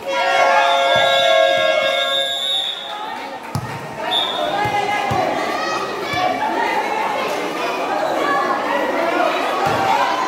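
A basketball bounces on a hard court.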